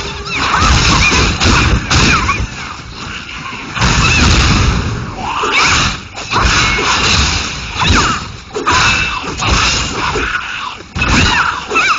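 Blades slash and strike repeatedly in a fierce fight.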